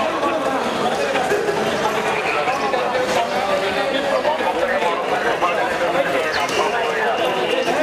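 A crowd of men shouts and talks loudly outdoors.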